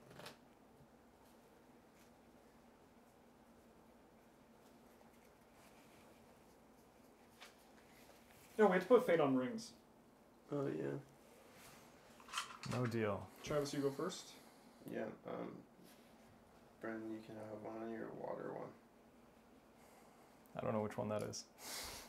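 Playing cards slide and tap on a table.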